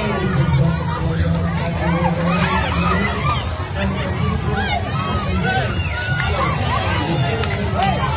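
A large crowd cheers and shouts excitedly outdoors.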